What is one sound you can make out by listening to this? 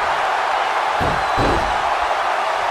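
A heavy body slams onto a wrestling ring with a deep thud.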